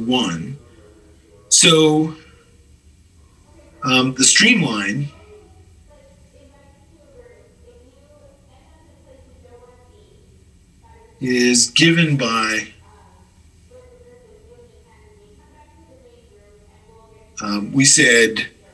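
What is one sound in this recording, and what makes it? A man speaks calmly and close to a microphone, in short phrases with long pauses.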